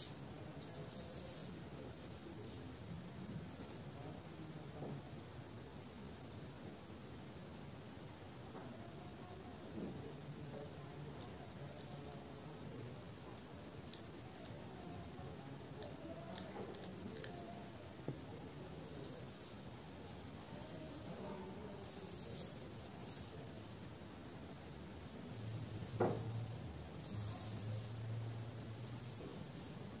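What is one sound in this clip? Fingers rustle softly through hair, close up.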